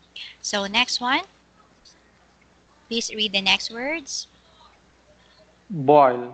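A woman speaks clearly over an online call, in short phrases.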